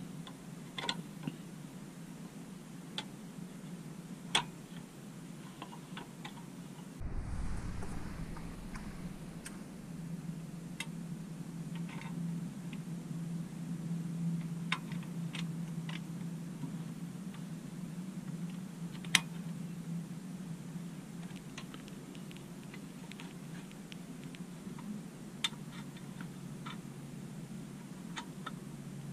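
Metal parts click and clink as hands fit a bracket together.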